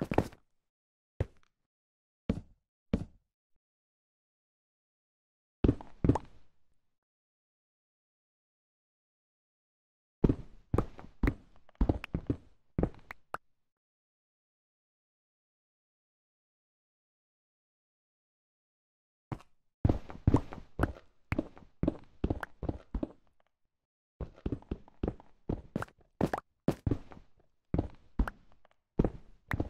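A pickaxe chips and breaks stone blocks in quick knocks.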